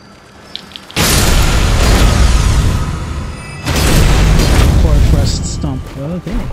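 A loud magical burst whooshes and roars.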